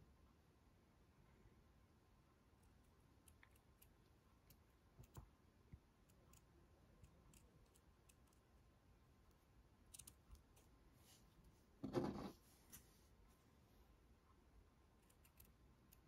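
Scissors snip through felt with soft, crisp clicks.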